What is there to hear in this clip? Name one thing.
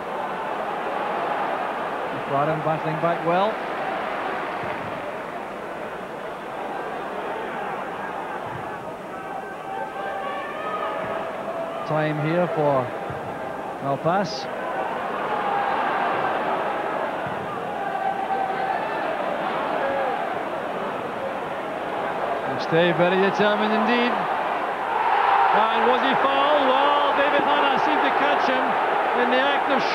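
A stadium crowd chants and sings, swelling louder near the end.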